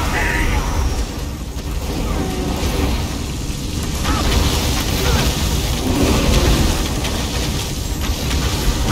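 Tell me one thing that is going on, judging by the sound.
Magic blasts and sword strikes clash in a fight.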